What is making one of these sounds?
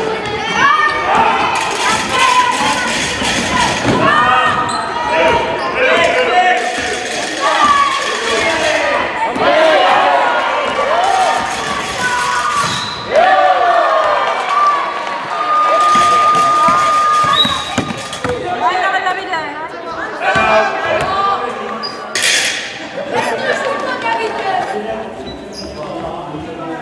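Children shout and call out across an echoing hall.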